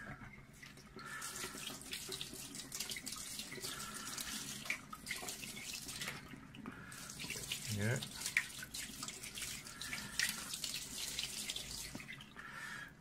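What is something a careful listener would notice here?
Hands splash and rub under running water.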